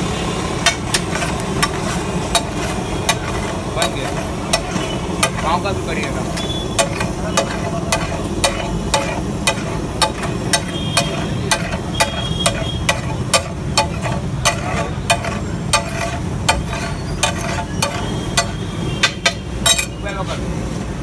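A metal spatula clanks and scrapes rapidly against a hot iron griddle.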